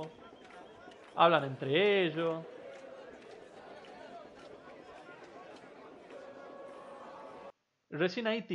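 A crowd of spectators murmurs outdoors.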